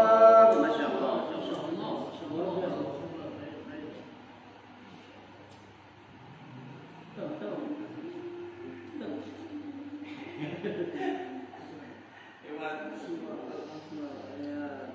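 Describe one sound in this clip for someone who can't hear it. A group of men recite together in low voices.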